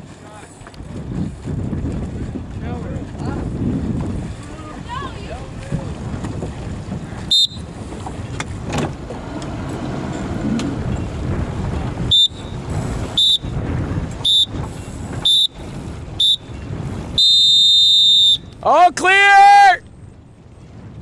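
Wind rushes across open water.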